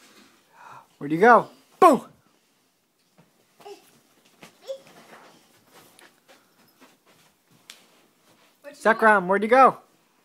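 A toddler squeals and babbles close by.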